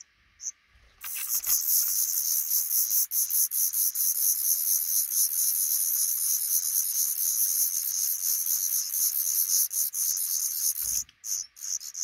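Baby birds chirp loudly and rapidly as they beg for food.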